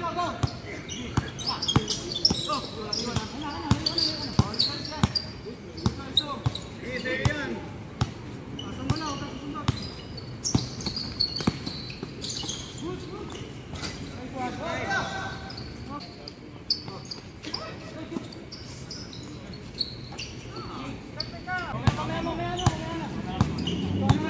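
Young men call out to each other during a game.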